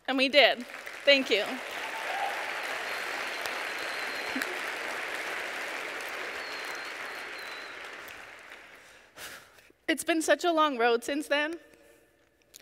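A woman speaks with feeling into a microphone in a large hall.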